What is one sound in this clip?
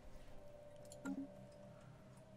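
A soft game interface click sounds.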